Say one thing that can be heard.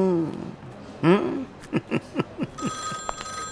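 An elderly man chuckles.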